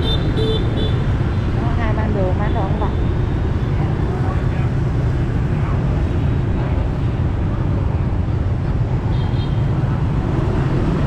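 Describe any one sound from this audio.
Traffic rumbles along a busy street outdoors.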